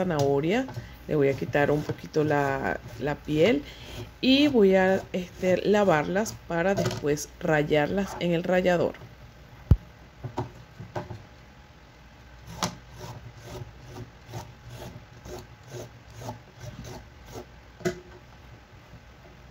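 A peeler scrapes along a carrot.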